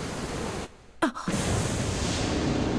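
A thunderclap booms.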